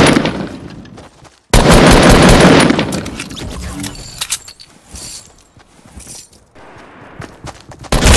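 Gunshots and explosions ring out in bursts.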